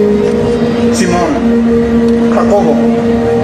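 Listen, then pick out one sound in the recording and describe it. A man speaks out loudly.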